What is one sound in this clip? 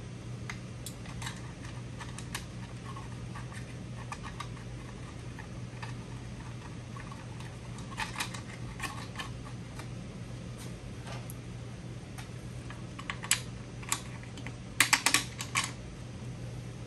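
Metal parts click and clink as a man works on a motorbike.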